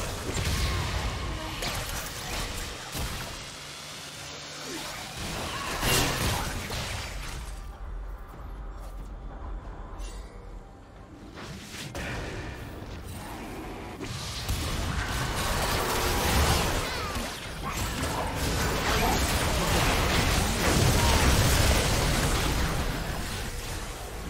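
Magic blasts and hits crackle and boom during a hectic video game battle.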